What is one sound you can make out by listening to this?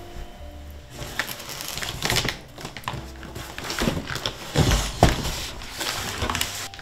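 A cardboard box scrapes and thumps on a wooden floor.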